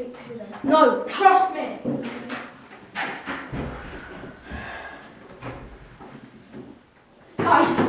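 A boy speaks with animation nearby.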